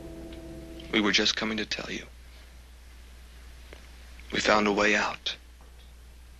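A young man speaks in a low, tense voice close by.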